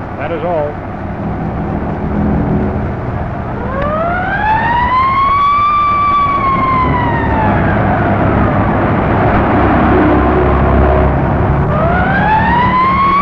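A car engine rumbles as the car drives along.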